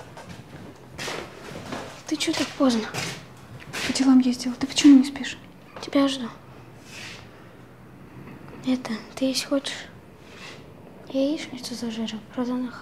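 A woman speaks quietly, close by.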